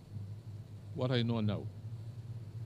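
An older man speaks briefly and calmly into a microphone.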